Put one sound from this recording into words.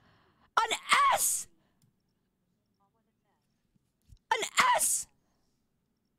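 A young woman speaks with animation, close to a microphone, in two short bursts.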